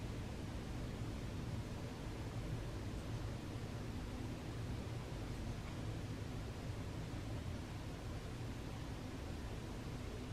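A low, steady rumble of distant town traffic carries on throughout.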